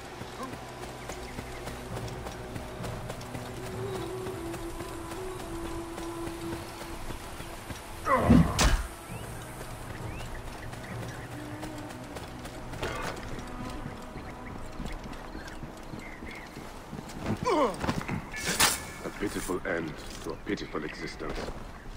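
Footsteps crunch over grass and rock.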